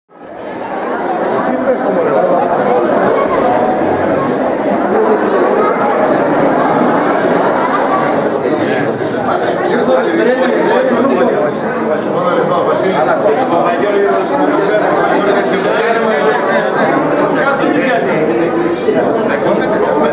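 A large crowd murmurs and chatters in a room.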